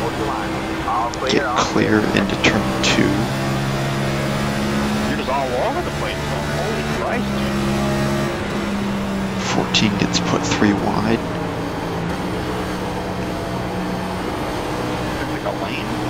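Other race car engines roar close by.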